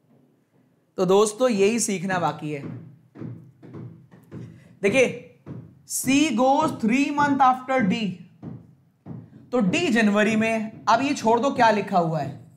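A man lectures with animation into a close microphone.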